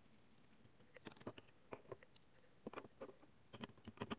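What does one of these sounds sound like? Plastic parts click softly as they are handled.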